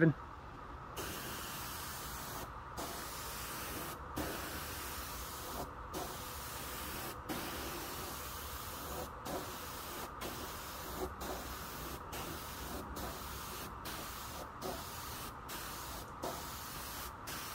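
A spray gun hisses in short bursts.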